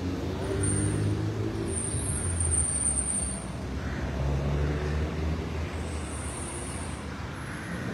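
Cars drive past outdoors, tyres rolling on asphalt.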